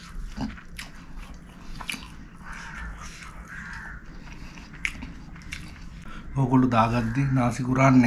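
Fingers squish and mix moist rice.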